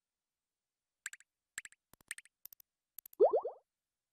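Short electronic ticks click in quick bursts.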